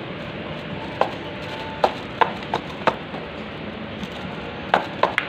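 A plastic toy clicks and taps in a child's hands.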